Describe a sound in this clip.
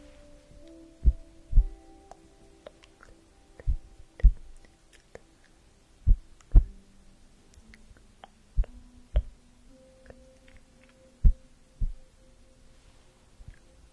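A young woman whispers softly, very close to a microphone.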